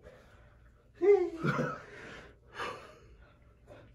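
A young man groans loudly with effort up close.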